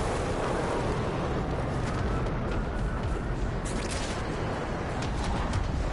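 Footsteps run over grass and dirt.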